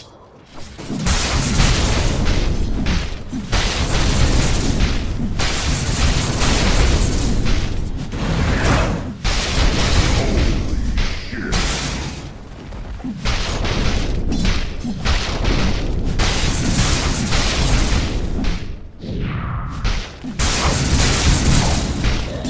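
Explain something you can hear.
Magic blasts and clashing blows burst out in a busy fight.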